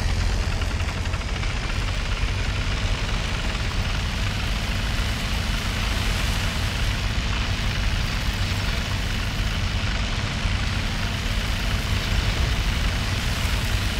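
A tank engine rumbles steadily as the tank drives over rough ground.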